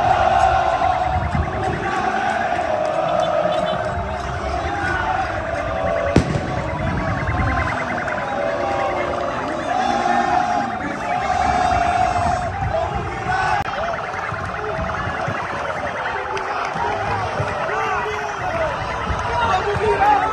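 A large crowd of fans sings and chants loudly outdoors.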